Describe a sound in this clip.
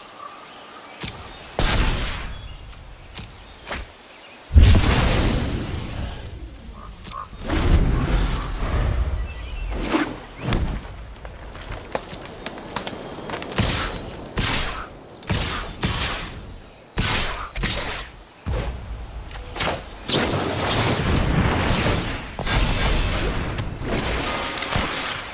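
A card game plays whooshing magical sound effects.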